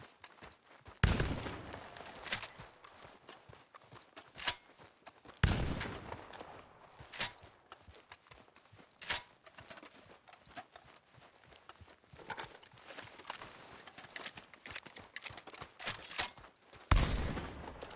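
A shotgun fires loudly and echoes across open country.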